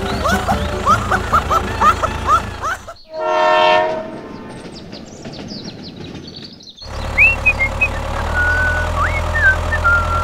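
A toy tractor's motor whirs steadily.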